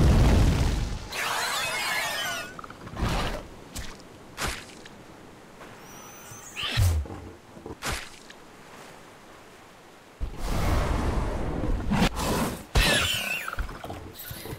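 Attacks land with loud impacts and whooshes.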